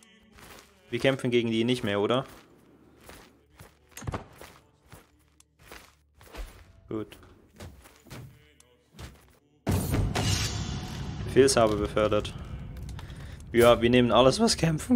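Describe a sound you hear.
A young man talks calmly into a close microphone, in short bursts.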